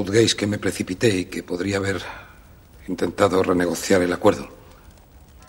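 A man speaks calmly and earnestly, close by.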